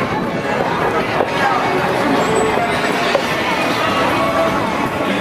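A crowd of pedestrians chatters in a busy street outdoors.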